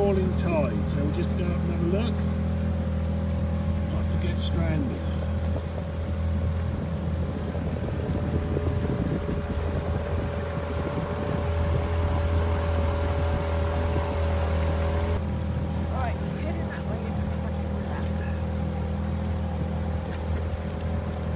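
Water rushes and splashes along the side of a boat.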